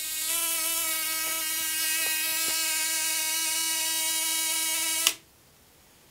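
An electric coil buzzes loudly with a steady, harsh tone, then cuts off abruptly.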